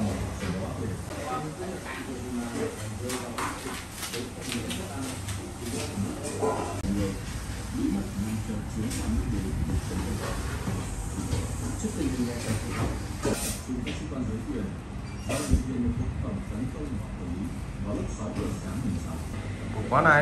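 Plates clink softly as a woman sets dishes down on the floor.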